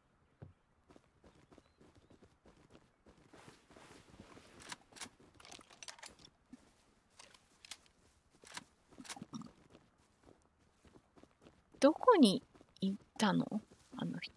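Footsteps crunch softly over rough ground.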